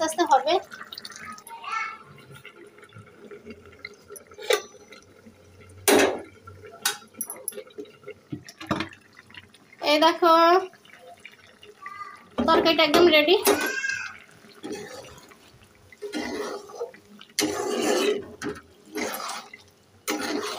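A thick sauce bubbles and simmers in a pan.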